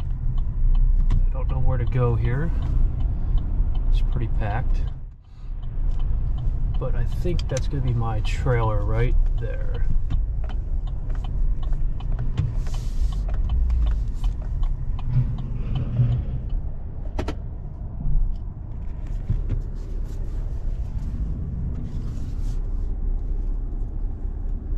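A vehicle engine rumbles low and steady from inside the cab.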